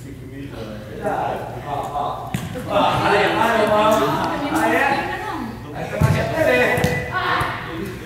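Boys shout to each other across the hall with echo.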